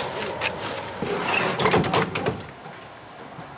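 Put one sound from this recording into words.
A metal door rattles and clicks shut.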